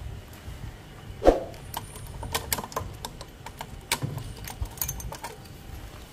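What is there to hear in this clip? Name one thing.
A metal disc lock clicks and rattles as it is taken off a wheel.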